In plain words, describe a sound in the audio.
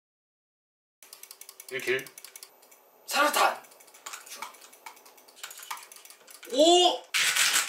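Keys clatter on a keyboard in fast bursts.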